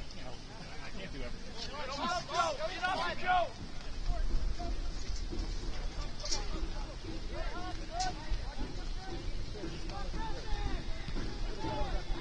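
Men shout and call out to each other across an open outdoor field.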